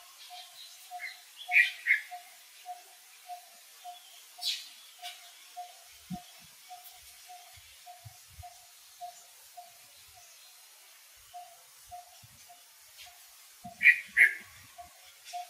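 A monkey gives short high squeaks in the trees.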